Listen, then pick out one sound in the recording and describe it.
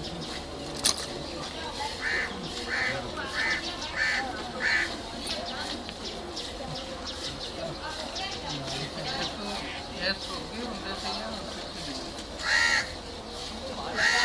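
Milk squirts rhythmically into a metal pail.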